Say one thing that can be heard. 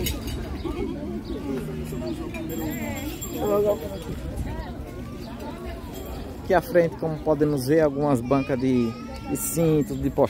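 Men and women talk in a low murmur nearby.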